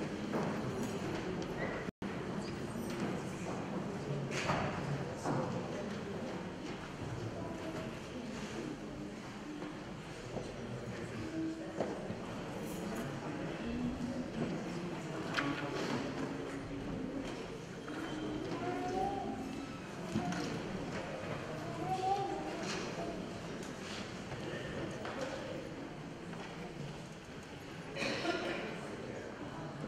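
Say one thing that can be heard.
A crowd murmurs and chatters quietly in a large echoing hall.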